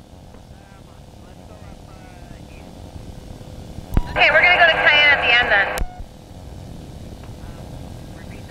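An engine drones steadily.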